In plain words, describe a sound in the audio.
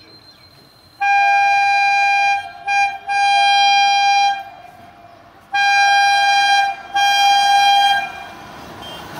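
A train horn blows loudly in long blasts.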